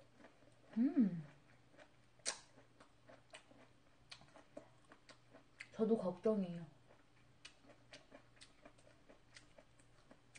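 A young woman chews food with soft, small smacking clicks.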